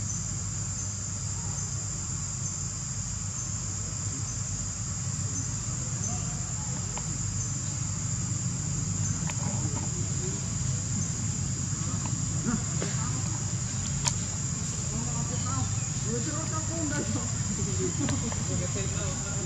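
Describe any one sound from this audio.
A monkey chews on a rubber hose.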